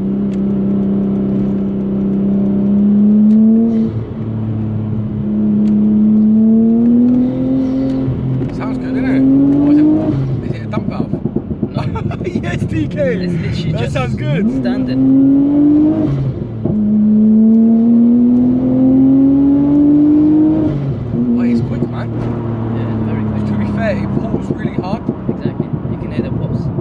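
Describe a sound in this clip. A car engine roars, rising in pitch through the gears.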